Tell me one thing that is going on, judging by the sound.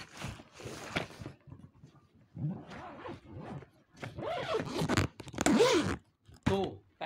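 A zipper rasps along a suitcase.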